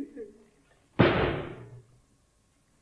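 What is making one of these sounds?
A man shouts loudly once.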